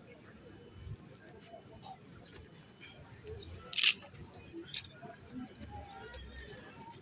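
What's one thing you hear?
A crowd of people murmurs nearby.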